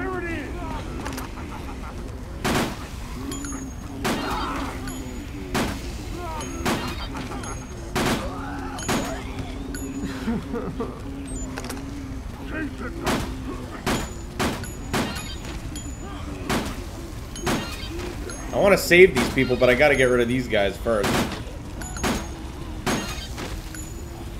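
Gunshots ring out sharply, one after another.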